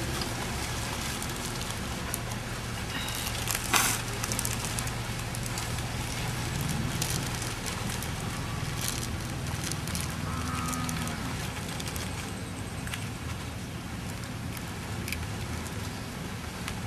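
Leaves rustle and crackle as hands weave them.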